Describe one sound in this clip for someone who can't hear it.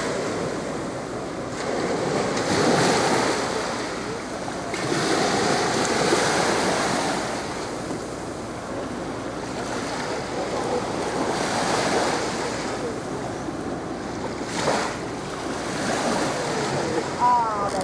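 Small waves wash softly onto a sandy shore.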